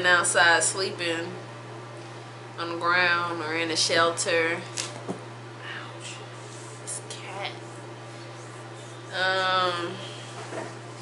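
A young woman talks calmly and close up, in short bursts.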